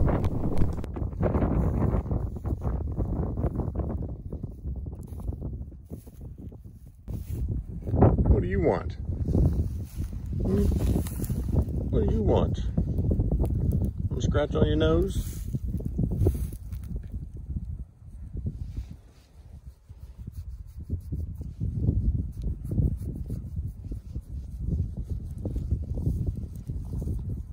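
Wind blusters outdoors, rumbling low throughout.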